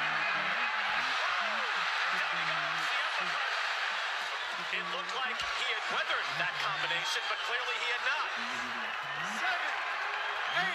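A large crowd roars and cheers in a big arena.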